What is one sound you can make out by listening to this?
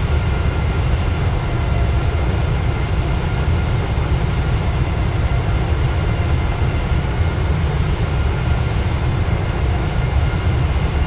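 Jet engines roar steadily, heard from inside an airplane cabin.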